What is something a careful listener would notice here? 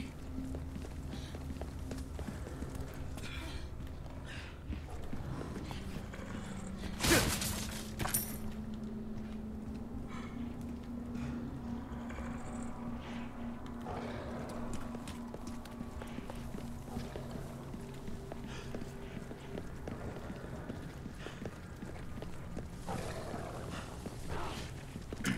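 Footsteps tread on cobblestones.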